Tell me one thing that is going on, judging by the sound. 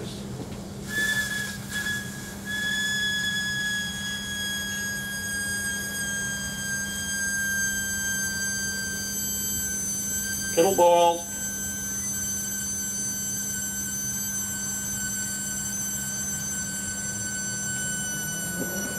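An electrical device gives off a high, thin whine that slowly sinks in pitch.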